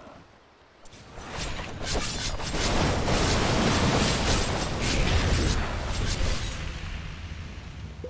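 Magic spells whoosh and crackle loudly.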